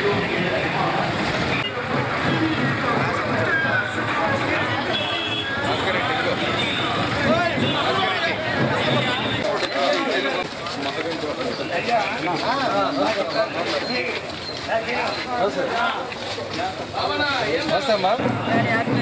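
A crowd of people talks and murmurs outdoors.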